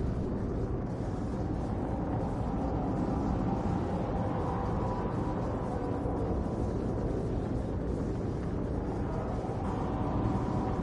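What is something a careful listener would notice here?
A spacecraft's engines roar steadily with a deep rumble.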